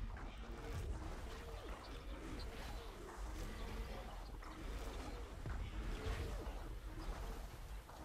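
A large creature breathes out a rushing, hissing gust.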